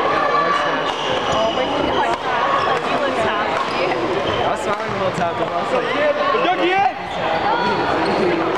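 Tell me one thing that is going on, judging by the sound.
Young people chatter and call out in a large echoing hall.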